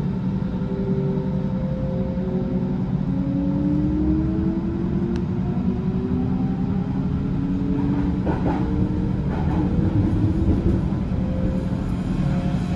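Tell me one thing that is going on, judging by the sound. An electric train motor whines, its pitch slowly rising.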